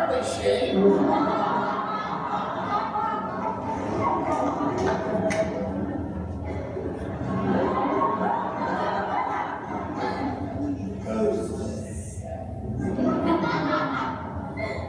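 A group of young people sing together in a large echoing hall.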